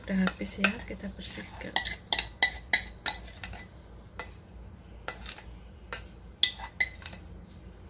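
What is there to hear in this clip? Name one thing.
A fork scrapes against a ceramic bowl.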